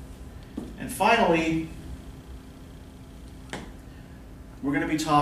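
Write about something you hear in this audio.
A man speaks calmly, lecturing in a room with a slight echo.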